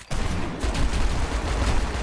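A pistol fires rapid shots.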